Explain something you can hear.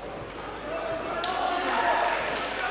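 A crowd cheers in a large hall.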